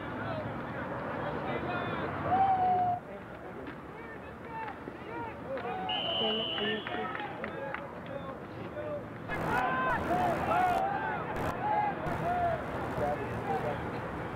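A crowd of young players and spectators shouts and cheers outdoors.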